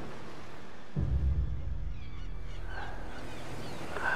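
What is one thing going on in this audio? Surf washes onto a beach.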